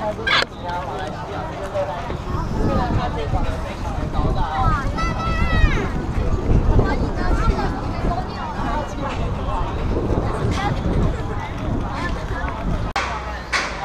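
Footsteps shuffle on pavement as a crowd walks.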